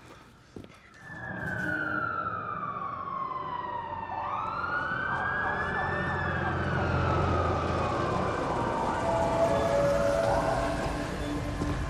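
Police sirens wail across a city at night, rising and falling.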